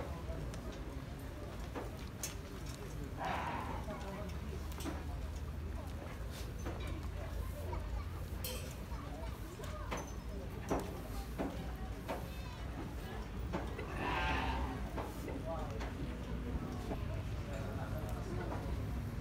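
Sheep hooves shuffle and knock on the ground.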